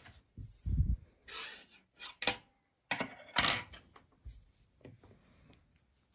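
Objects are set down on a table with soft knocks.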